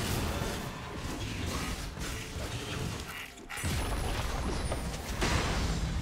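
Magic spells burst and crackle in a game battle.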